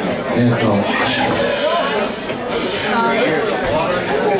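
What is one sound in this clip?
Cymbals crash.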